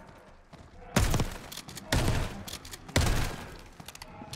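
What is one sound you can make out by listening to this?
Gunshots crack loudly, one at a time.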